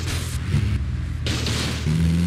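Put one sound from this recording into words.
A van bumps and thuds as it crashes onto a kerb.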